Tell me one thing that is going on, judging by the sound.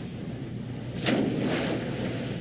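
A body splashes into a pool.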